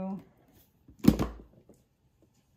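A plastic lid snaps open on a container.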